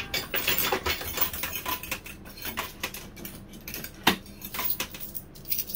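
Coins clink and clatter inside a coin pusher machine.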